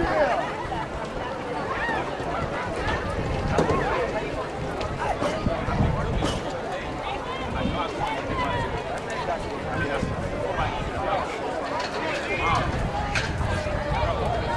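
A crowd of people chatters and calls out at a distance outdoors.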